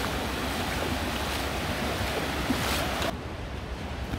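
Small waves break and wash onto a beach.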